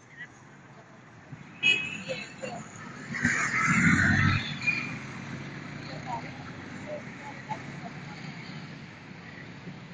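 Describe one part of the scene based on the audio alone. Motorcycle engines rumble past close by.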